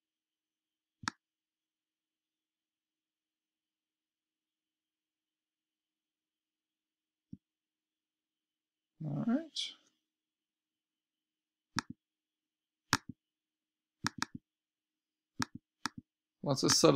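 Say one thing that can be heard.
A computer mouse clicks several times.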